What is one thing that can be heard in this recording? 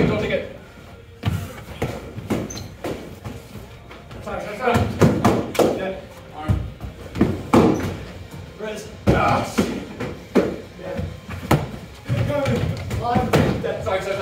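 Young men shout and call out with energy nearby, in an echoing room.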